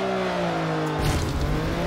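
A boost burst whooshes loudly.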